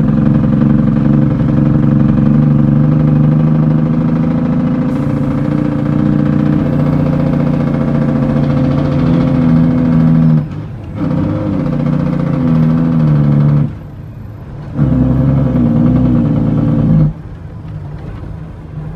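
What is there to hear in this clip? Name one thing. A vehicle's engine drones steadily from inside the cab.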